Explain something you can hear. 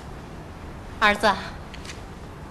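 A middle-aged woman calls out warmly, close by.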